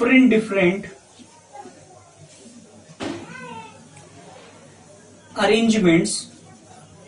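A man speaks in bursts, explaining calmly nearby.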